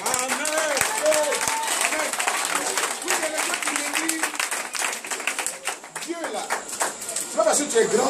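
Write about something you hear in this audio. Many people clap their hands in a quick rhythm.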